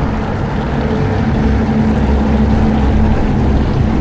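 A vent hisses and bubbles steadily underwater.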